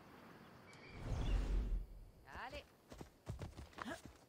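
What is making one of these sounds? A horse snorts and whinnies close by.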